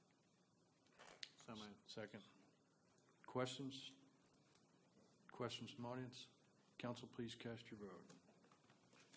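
A man speaks calmly through a microphone in a large room, in short phrases.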